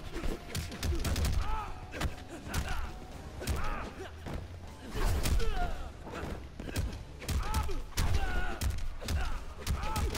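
Punches and kicks land with heavy thuds in a fight.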